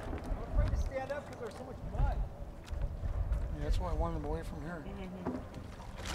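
Water splashes as a man climbs onto a paddleboard.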